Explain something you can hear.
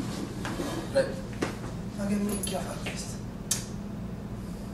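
A chair knocks against a wooden floor.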